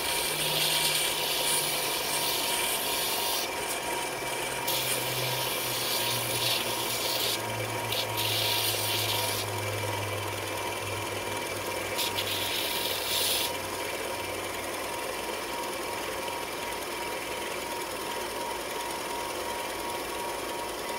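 A belt sander motor hums steadily.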